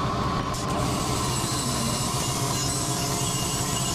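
A hand tool scrapes against a soft sheet.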